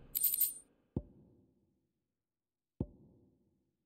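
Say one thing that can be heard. A short interface click sounds twice.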